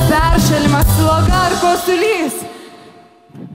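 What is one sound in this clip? A woman sings loudly over music.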